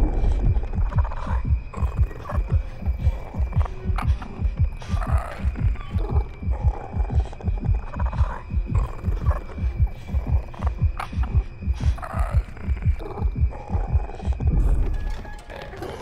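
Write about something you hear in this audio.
A young woman breathes quietly and fearfully, close by.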